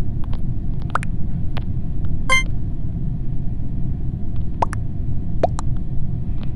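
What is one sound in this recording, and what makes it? Short electronic chimes pop up now and then.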